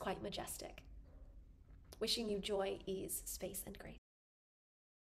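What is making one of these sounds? A young woman speaks cheerfully and close to a microphone.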